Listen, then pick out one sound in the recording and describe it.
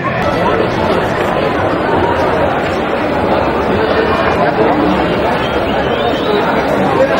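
Young men call out to one another across an open outdoor field.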